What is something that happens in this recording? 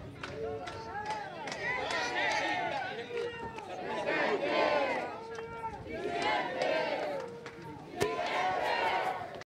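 A large crowd of men and women chants and sings loudly outdoors.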